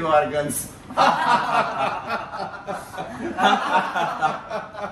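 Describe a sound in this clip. A group of men and women laugh loudly together.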